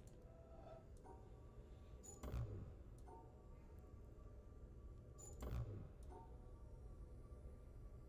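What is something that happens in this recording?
A soft electronic tone hums while a line is traced across a puzzle panel.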